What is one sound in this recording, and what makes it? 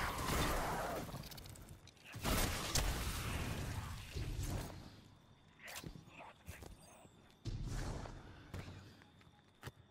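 A gun fires loud booming shots.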